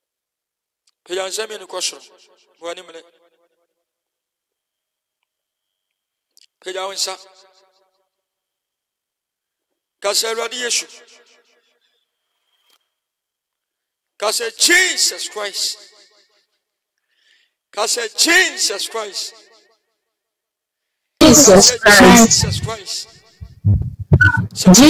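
A young man speaks with animation into a microphone, in short bursts with pauses.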